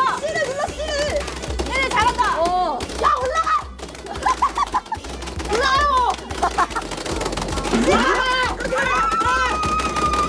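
Young women laugh and exclaim excitedly close by.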